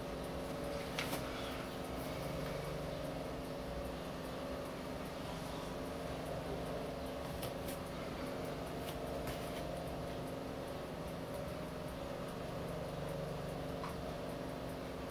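A mechanical watch ticks quickly and softly, close by.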